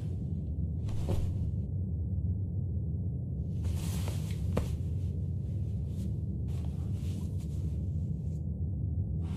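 Hands scrape and shuffle across a hard floor.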